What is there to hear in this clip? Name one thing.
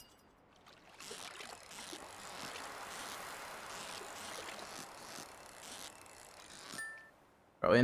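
A fishing reel clicks and whirs as a line is reeled in.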